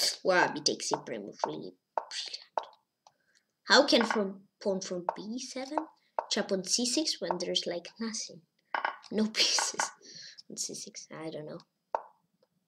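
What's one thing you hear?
A boy talks with animation, close to a microphone.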